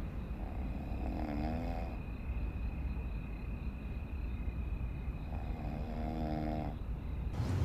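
A person snores softly.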